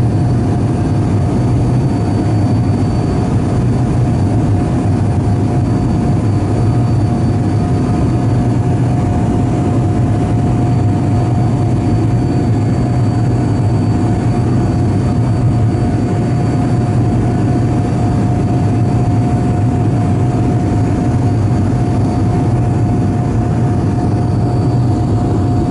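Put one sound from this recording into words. Air rushes loudly past the aircraft.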